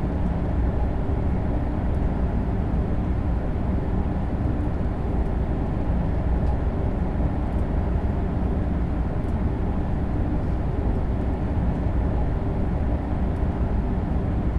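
A high-speed electric train rumbles along the rails at speed, heard from inside the cab.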